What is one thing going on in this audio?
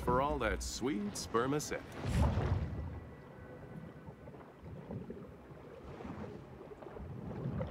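Water swishes around a large swimming shark.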